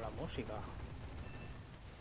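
Aircraft cannons fire in bursts.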